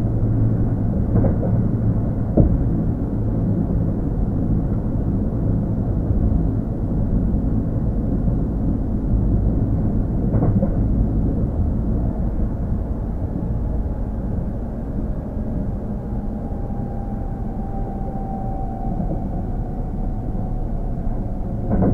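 An electric train hums with a low, steady rumble close by.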